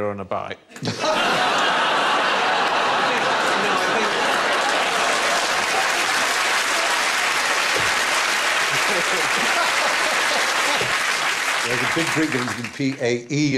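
A man laughs heartily, close to a microphone.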